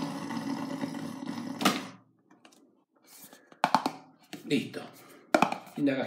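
A cardboard box lid slides off with a soft scrape.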